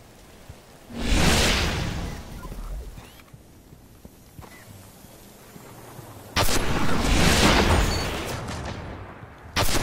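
A video-game energy blast whooshes and booms.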